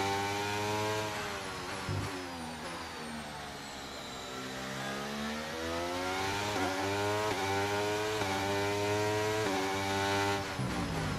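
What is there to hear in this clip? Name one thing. A racing car engine whines loudly, rising in pitch and dropping sharply with each gear change.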